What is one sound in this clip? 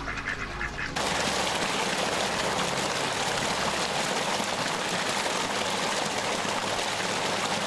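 Water gushes and splashes loudly.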